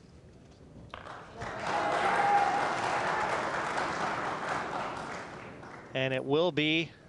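A crowd claps and cheers loudly.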